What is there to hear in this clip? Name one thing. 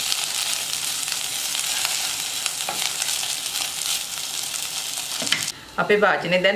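Food sizzles loudly in a hot pot.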